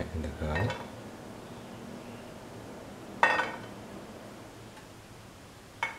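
Chopped ginger and garlic drop into an oiled pan.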